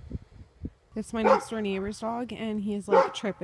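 A dog whines.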